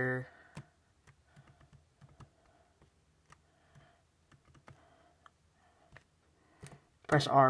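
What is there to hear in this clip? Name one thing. Fingers tap keys on a laptop keyboard with quick soft clicks.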